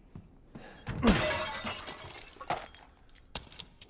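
A heavy blow smashes a wooden crate.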